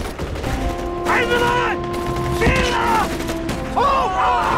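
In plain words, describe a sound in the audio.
An elderly man shouts in alarm close by.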